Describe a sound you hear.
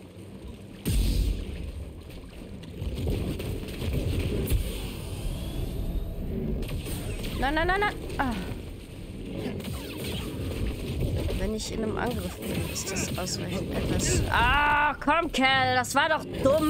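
A lightsaber hums and clashes.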